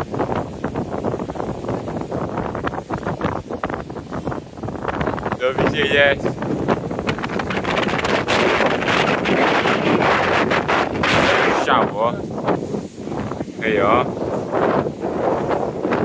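Strong wind buffets the microphone outdoors in loud, gusty rushes.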